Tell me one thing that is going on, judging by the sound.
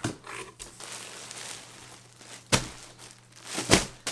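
Plastic packaging crinkles as it is lifted out of a box.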